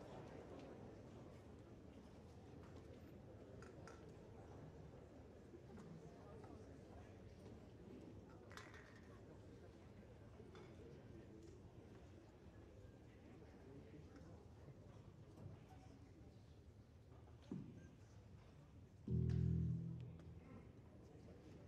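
A school band plays softly in a large hall.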